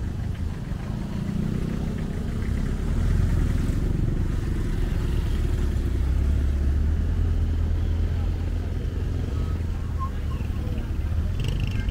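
A tricycle engine putters close by.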